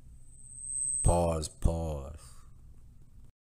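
A young man speaks briefly and close by.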